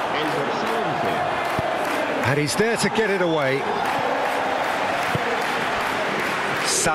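A large crowd roars and cheers steadily in a stadium.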